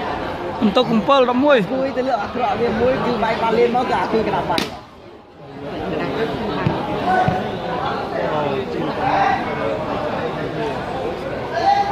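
A large crowd of men and boys chatters and shouts.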